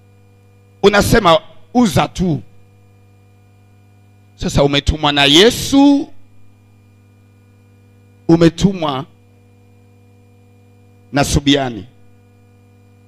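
A man preaches forcefully into a microphone in short bursts, with pauses between phrases.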